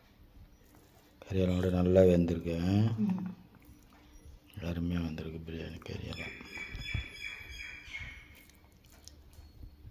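A hand squishes and mixes soft rice.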